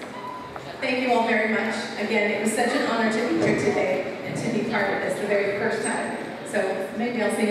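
A woman speaks through a microphone and loudspeakers, echoing in a large hall.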